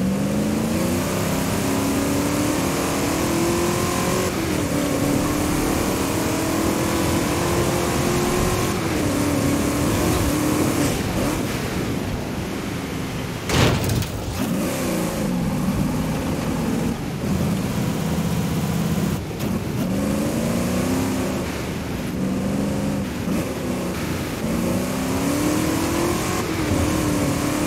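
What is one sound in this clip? A race car engine roars and revs up and down through gear changes.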